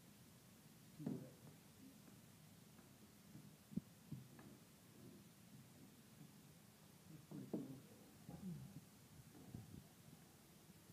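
A wooden rolling pin rolls and thumps on soft clay.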